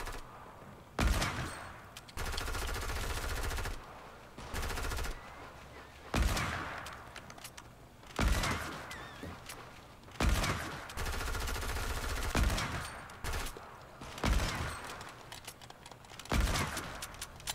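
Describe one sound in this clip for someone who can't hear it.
Gunshots ring out one at a time, every couple of seconds.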